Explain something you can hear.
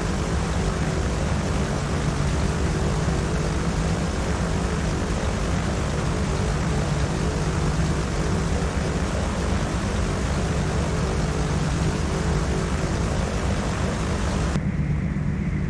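A small propeller plane's engine drones steadily outside.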